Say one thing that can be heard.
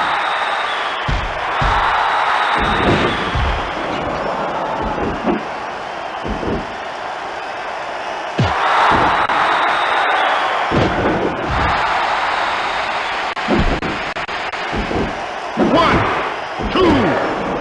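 Heavy thuds of bodies hitting a wrestling mat sound now and then.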